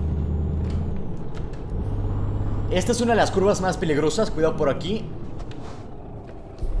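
A bus engine hums steadily at low speed.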